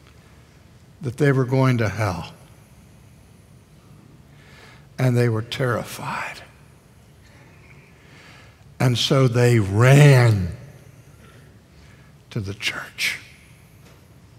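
An elderly man speaks emphatically into a microphone in short bursts with pauses.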